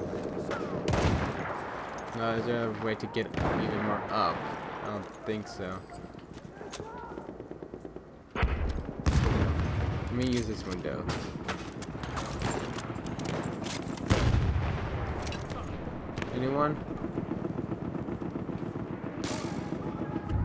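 Rifle shots ring out sharply with loud echoes.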